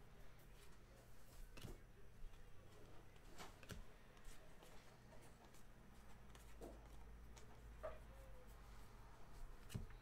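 Trading cards rustle and flick against each other between hands.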